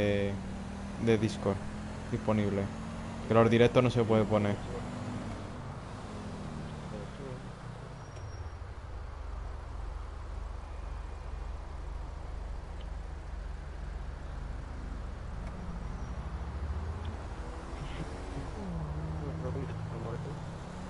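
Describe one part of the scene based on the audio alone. A car engine hums and drones steadily.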